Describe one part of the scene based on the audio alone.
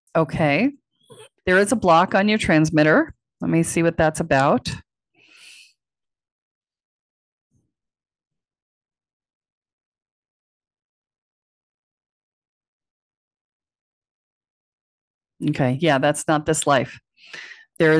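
A middle-aged woman speaks calmly into a microphone.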